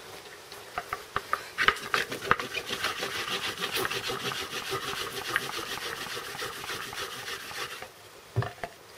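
Hands rub back and forth on a wooden board with a steady scratching.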